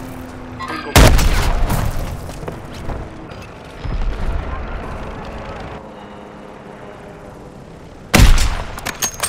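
A sniper rifle fires a loud, sharp shot.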